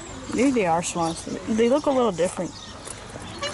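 A swan honks nearby.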